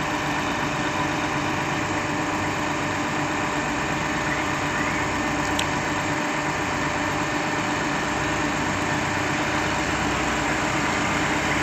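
A concrete pump truck's engine runs with a steady loud drone and hum.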